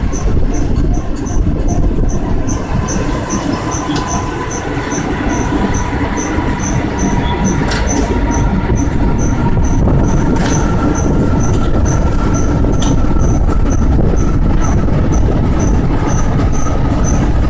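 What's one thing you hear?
Train wheels click in a steady rhythm over rail joints.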